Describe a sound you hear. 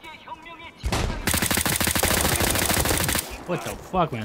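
Automatic gunfire rattles rapidly and loudly.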